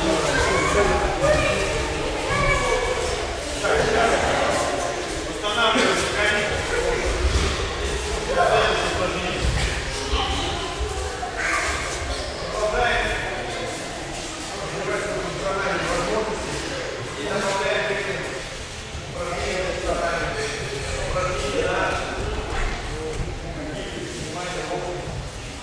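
A man speaks loudly to a group in a large echoing hall.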